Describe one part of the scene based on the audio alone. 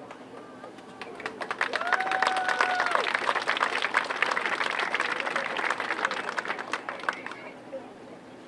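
A drumline pounds out a fast beat.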